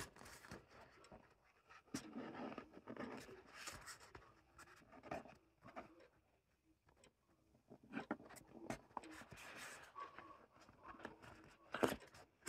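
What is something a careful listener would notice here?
Cardboard taps and scrapes on a table.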